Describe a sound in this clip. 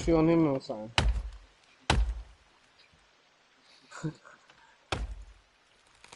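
An axe chops into a tree trunk with dull thuds.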